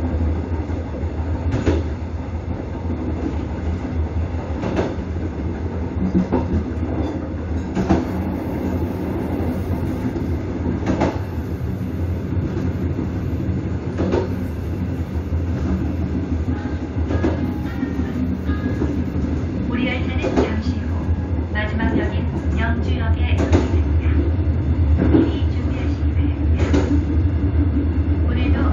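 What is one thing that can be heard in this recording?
A passenger train rumbles along the rails.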